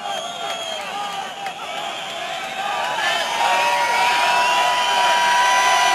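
A live rock band plays loudly in a large echoing arena.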